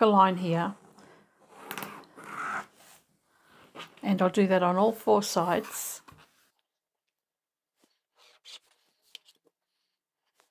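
Pins click softly as they are pushed into fabric.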